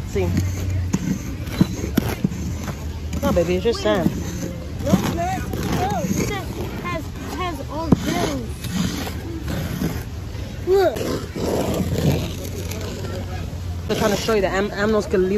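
A toy tool scrapes and pats through dry sand.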